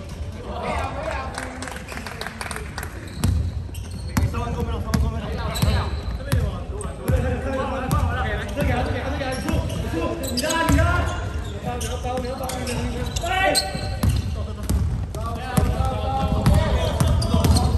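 Young men call out to each other across the court.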